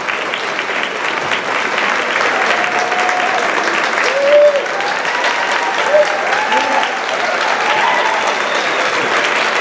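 A large crowd chatters in a big echoing hall.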